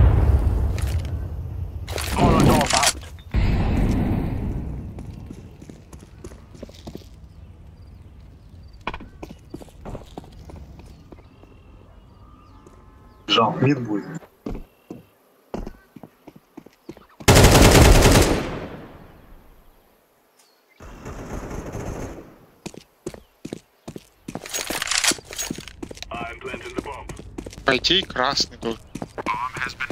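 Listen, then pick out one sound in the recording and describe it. Footsteps tread on stone pavement.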